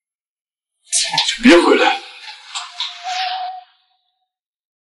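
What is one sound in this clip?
A young man speaks sharply, close by.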